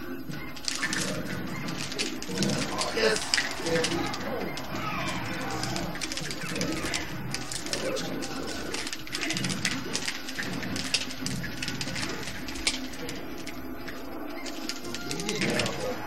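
Video game fighters land punches and kicks with sharp smacks.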